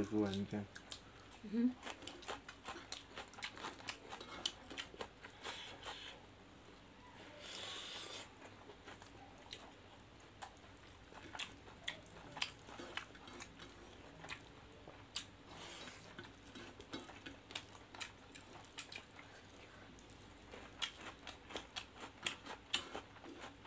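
Two people chew and smack their lips loudly, close up.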